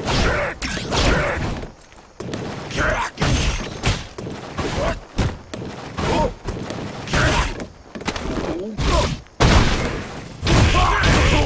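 Punches and kicks land with sharp thuds and smacks.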